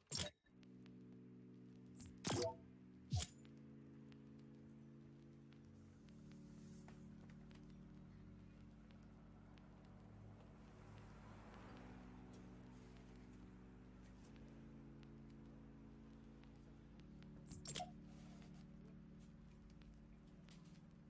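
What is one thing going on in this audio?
Steady electronic menu music plays throughout.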